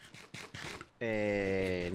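A chicken clucks nearby.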